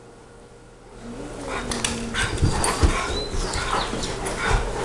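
Two dogs scuffle and growl playfully.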